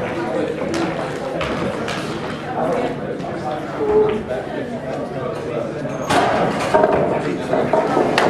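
Pool balls knock together on a table.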